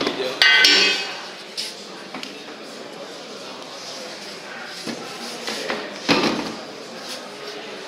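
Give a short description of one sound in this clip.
Hands scrape and knock lumps of clay in a plastic bin.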